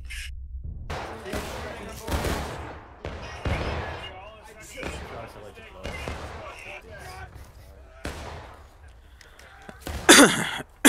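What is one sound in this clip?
Rifle shots crack and boom repeatedly outdoors.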